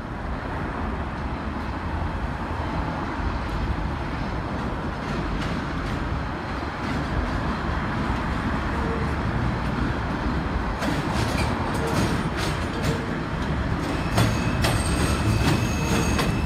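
A subway train approaches, its wheels clattering over track switches.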